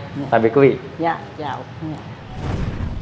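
A woman greets cheerfully, speaking close by.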